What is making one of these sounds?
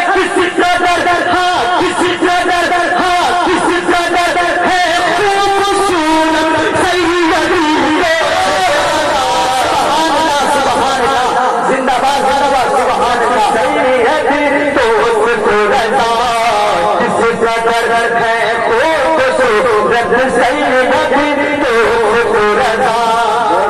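A man sings or chants loudly into a microphone through a loudspeaker, in a reverberant hall.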